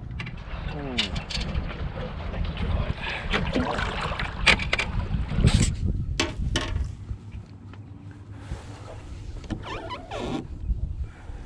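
Knocks and thumps sound on a boat's hull and deck.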